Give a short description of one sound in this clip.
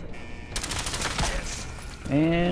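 A heavy gun fires a loud burst.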